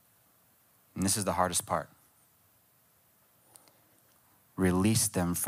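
A young man speaks calmly into a microphone, with pauses between phrases.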